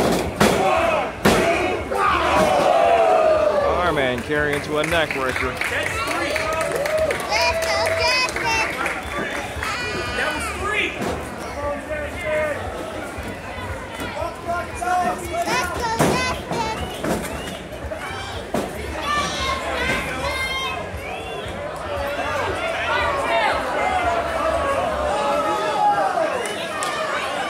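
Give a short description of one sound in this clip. A crowd of spectators chatters and shouts in a large hall.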